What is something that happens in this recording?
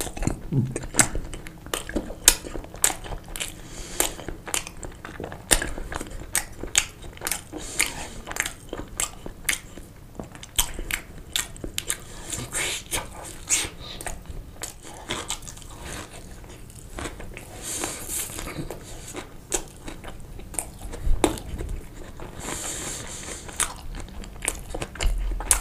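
A man chews and smacks his lips close to the microphone.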